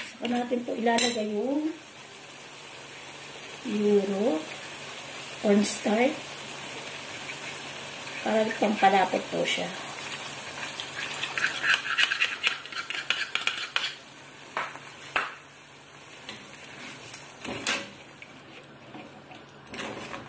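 Food sizzles gently in a frying pan.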